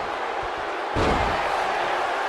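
A body slams heavily onto a wrestling mat.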